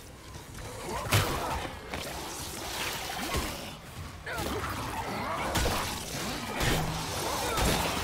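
Heavy blows thud against flesh.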